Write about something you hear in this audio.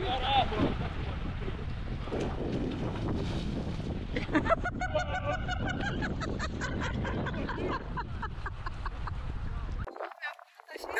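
Shallow water splashes and churns close by.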